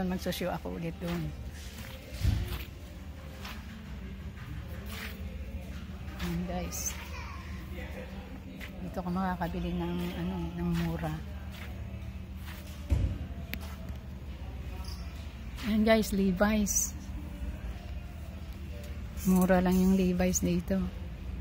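A middle-aged woman talks close to the microphone.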